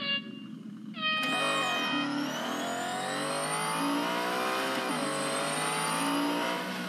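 A race car engine roars and revs higher as it speeds up.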